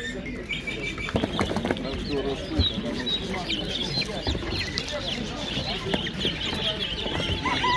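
Chickens cluck softly.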